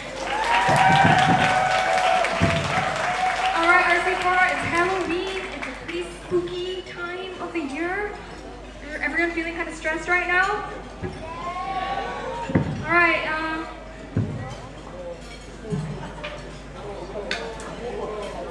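An electric guitar plays through loudspeakers.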